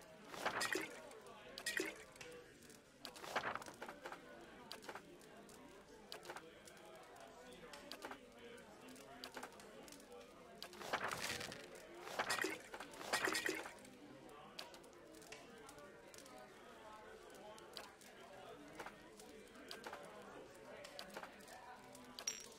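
Short interface clicks and item clinks sound now and then as items are moved in a game menu.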